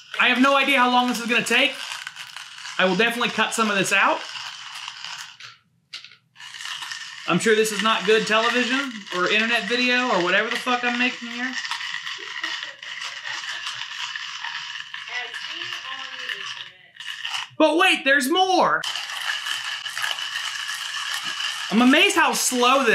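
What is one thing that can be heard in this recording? A hand grinder grinds coffee beans with a steady rasping.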